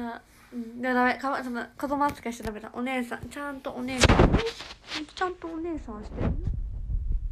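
A young woman speaks brightly and animatedly, close to a phone microphone.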